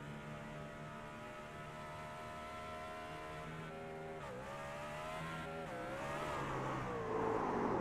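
A racing truck engine roars steadily, its pitch dipping and rising as it shifts gears.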